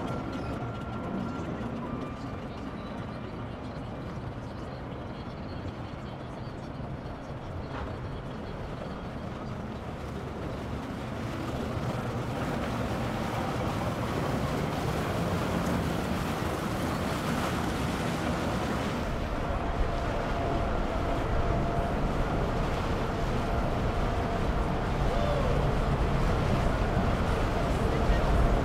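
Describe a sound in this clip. A boat engine rumbles low on the water.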